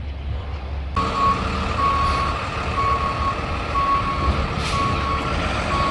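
A truck's warning alarm beeps in regular pulses.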